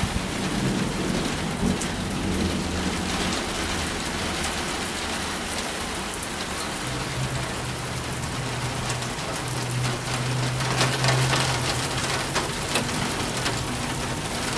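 Strong wind roars and gusts outdoors in a storm.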